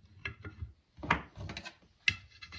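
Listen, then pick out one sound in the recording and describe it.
A hard object clatters down onto wood.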